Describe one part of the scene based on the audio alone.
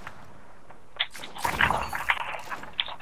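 A rifle fires a loud shot.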